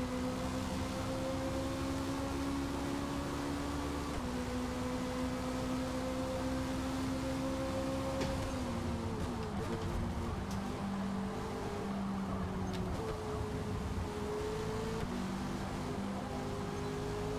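A racing car engine roars at high revs, dropping in pitch with each gear shift.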